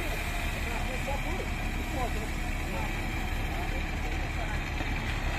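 A wheel loader's diesel engine rumbles steadily close by.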